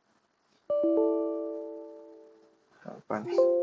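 A computer error alert chimes once and fades.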